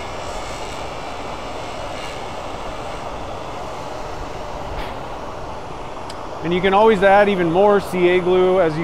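A lathe motor whirs steadily.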